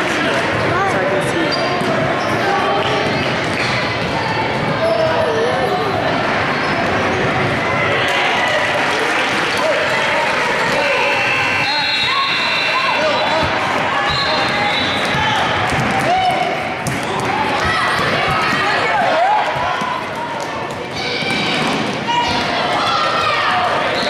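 A crowd of spectators chatters and calls out in a large echoing gym.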